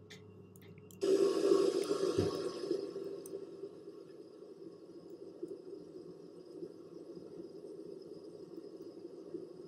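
Jet engines roar and then settle to a steady whine.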